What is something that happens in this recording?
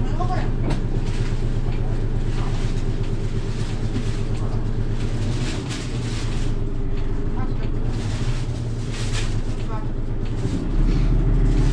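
A bus engine idles with a steady low rumble.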